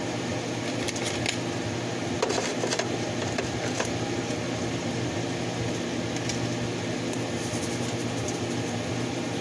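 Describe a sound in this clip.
A spice shaker rattles and taps as seasoning is shaken out.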